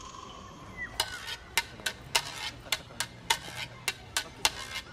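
Shoes tap sharply in a quick, even rhythm on pavement.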